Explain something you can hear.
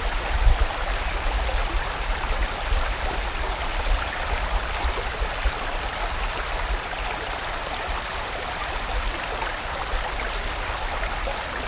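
A stream rushes and babbles steadily over rocks close by.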